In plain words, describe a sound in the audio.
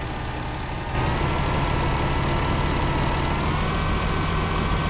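A truck engine rumbles louder from outside, revving up.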